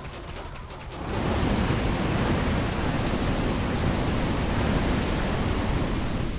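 Fire blasts roar and crackle steadily.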